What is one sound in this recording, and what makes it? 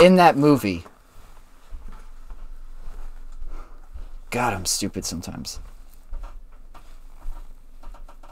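Leather straps and buckles rustle and clink as a young man adjusts them.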